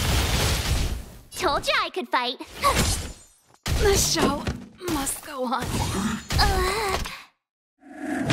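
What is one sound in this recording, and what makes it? Magical blasts and crashes ring out in a fight.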